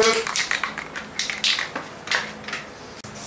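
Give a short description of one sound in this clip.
A spray can rattles as it is shaken.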